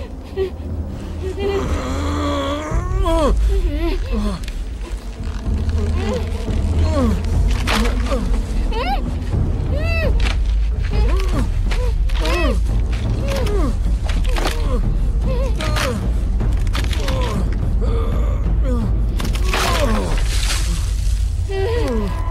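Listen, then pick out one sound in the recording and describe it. A gagged man groans and grunts, muffled, as he strains.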